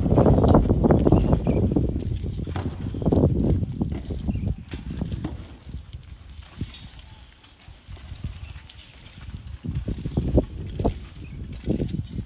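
Loose dirt and stones crunch and scrape as a person climbs a crumbling slope.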